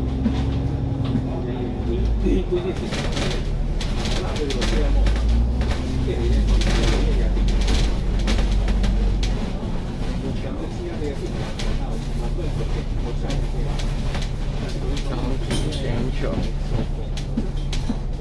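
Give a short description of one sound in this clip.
City traffic hums and rolls by outside.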